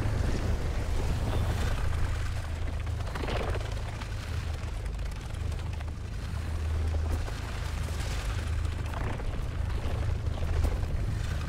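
Footsteps crunch over grass and dirt.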